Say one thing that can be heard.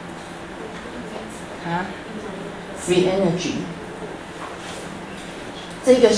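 A woman lectures calmly through a microphone.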